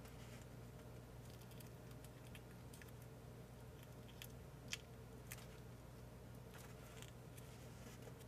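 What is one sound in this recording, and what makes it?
Paper crinkles and rustles softly as fingers fold it.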